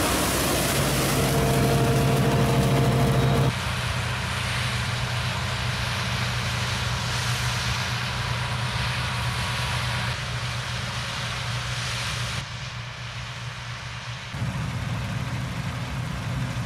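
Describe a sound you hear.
A diesel combine harvester rumbles as it threshes grain.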